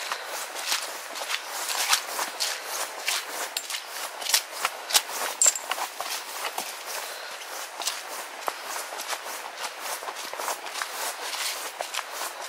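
A walking pole taps on the ground.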